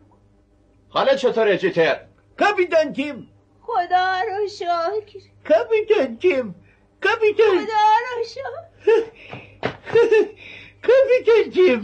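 An elderly woman calls out loudly nearby.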